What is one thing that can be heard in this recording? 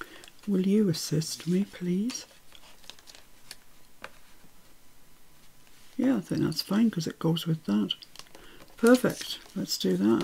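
Paper rustles softly as hands press it flat.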